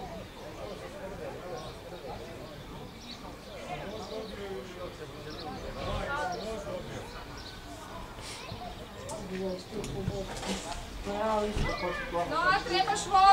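Young children talk and call out nearby outdoors.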